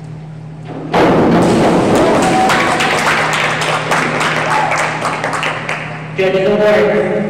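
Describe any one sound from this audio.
A crowd cheers and applauds in an echoing hall.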